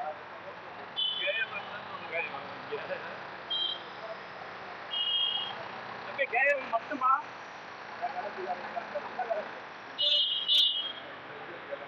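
Vehicle horns honk in street traffic.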